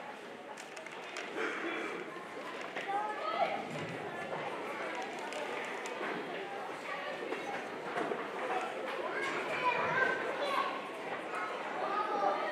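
Children's footsteps shuffle on wooden risers.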